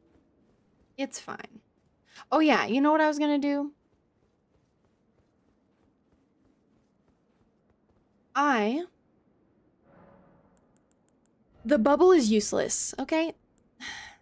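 A young woman speaks animatedly and close to a microphone, in short bursts.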